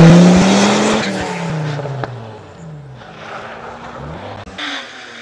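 A rally car engine fades into the distance.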